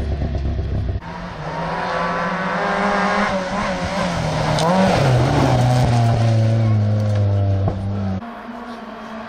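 A second rally car engine revs hard as the car approaches and roars past.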